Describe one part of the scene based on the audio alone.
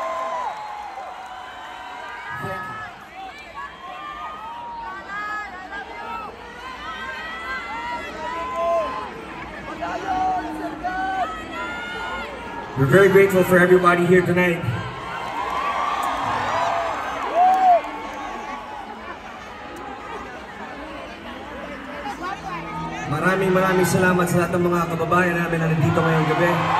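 A large outdoor crowd cheers and whistles.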